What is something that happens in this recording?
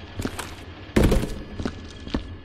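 A cardboard box is tossed and thuds onto the floor.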